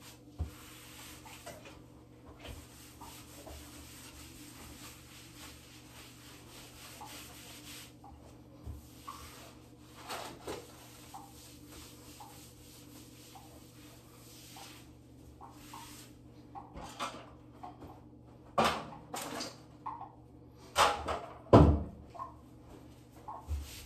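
A damp sponge wipes and scrubs across tile.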